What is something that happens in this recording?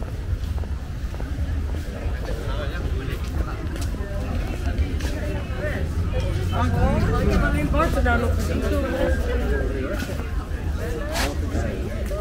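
Footsteps scuff on paving.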